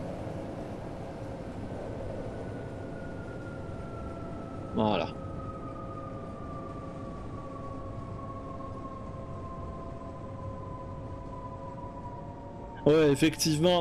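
A whining motor tone slowly falls in pitch as the train slows.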